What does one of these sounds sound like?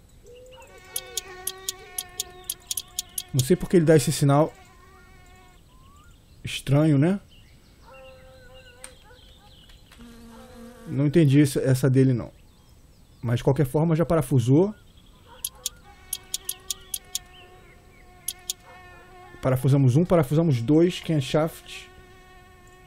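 A wrench turns a bolt with quick metallic clicks.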